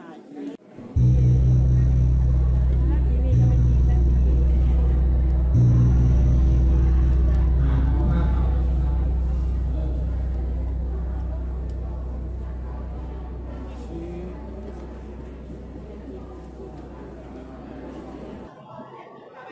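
A large gong is struck several times and rings out, slowly fading.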